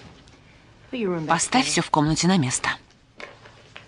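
A woman speaks sharply nearby.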